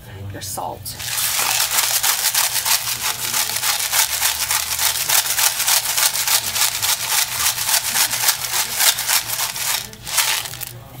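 Food sizzles and crackles loudly in a hot pan.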